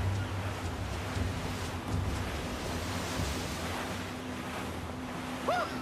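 A wave crashes and sprays against the hull of a ship.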